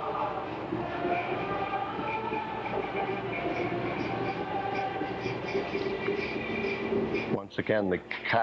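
A group of men chant slowly together in a large echoing hall.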